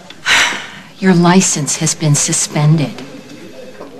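A woman speaks firmly, close by.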